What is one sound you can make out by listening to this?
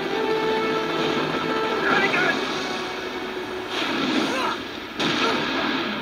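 An explosion booms and roars with fire.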